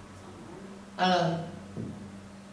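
An elderly woman speaks briefly through a microphone.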